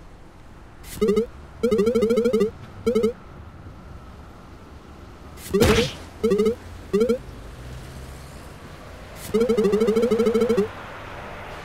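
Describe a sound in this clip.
Rapid electronic blips chatter in short bursts, like a cartoon voice.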